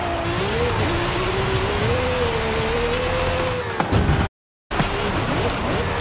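A sports car engine roars at high revs, shifting pitch as it speeds up and slows.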